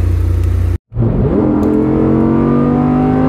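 A sports car engine revs up sharply, rising in pitch.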